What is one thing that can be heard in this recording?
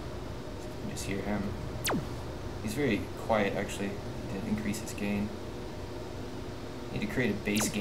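A man speaks casually into a headset microphone.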